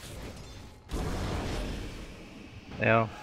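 A burst of fire whooshes and roars.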